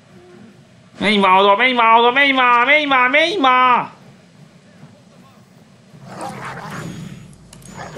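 A young man speaks loudly close to a microphone.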